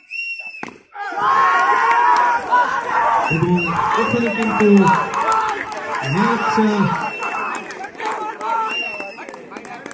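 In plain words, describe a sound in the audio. A crowd cheers and shouts outdoors.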